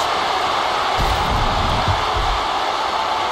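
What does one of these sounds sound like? A heavy body slams down onto a table with a loud thud.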